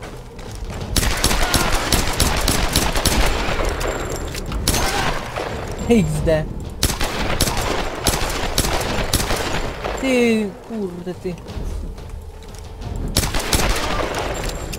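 Gunshots fire rapidly, one after another.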